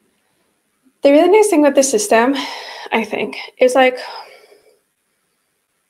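A young woman speaks calmly and expressively into a close microphone.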